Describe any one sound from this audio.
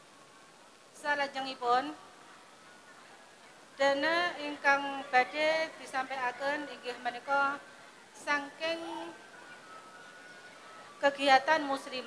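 A woman chants melodiously into a microphone, heard through loudspeakers, in short phrases with pauses.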